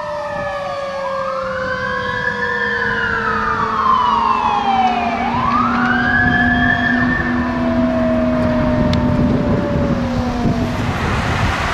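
A siren wails up and down close by.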